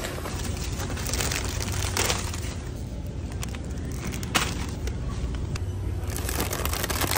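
A plastic snack bag crinkles as it is handled.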